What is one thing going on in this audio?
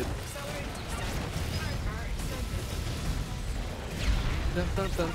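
Video game explosions and electronic blasts crackle rapidly.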